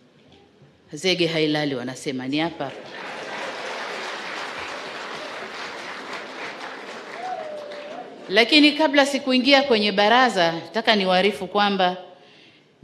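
A woman speaks into a microphone over a loudspeaker.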